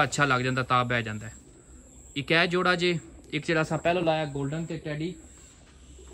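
A pigeon coos nearby.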